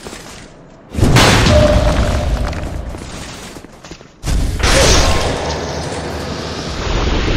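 A sword swings through the air with heavy whooshes.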